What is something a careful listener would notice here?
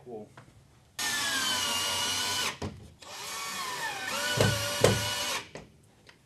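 A cordless drill whirs in short bursts, driving a screw.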